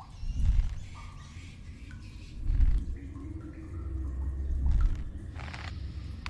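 A rope swings through the air with a rushing whoosh.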